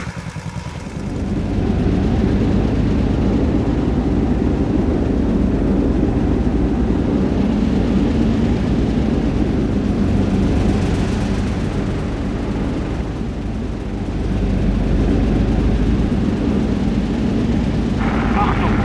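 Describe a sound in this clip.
Tank engines rumble and tracks clatter steadily.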